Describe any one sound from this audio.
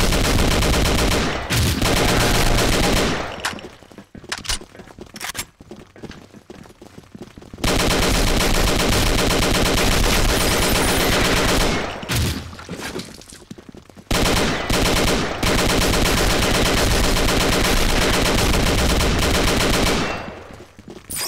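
An automatic rifle fires rapid bursts of shots.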